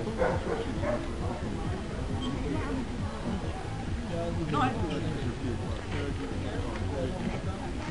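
Adults talk quietly nearby outdoors.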